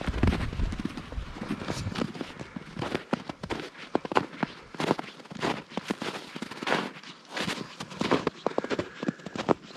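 Boots crunch steadily through snow.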